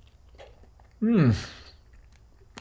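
A young man makes an appreciative sound while eating.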